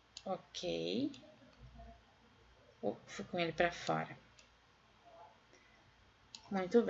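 A woman speaks calmly into a microphone, close by.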